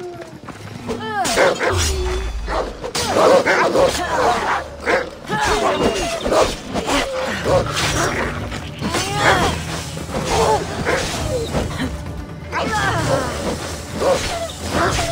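Wolves snarl and growl fiercely.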